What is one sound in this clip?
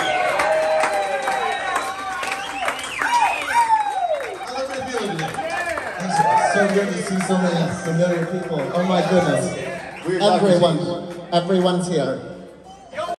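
A live band plays loudly in a room.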